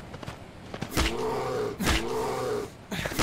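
A wild boar grunts and squeals up close.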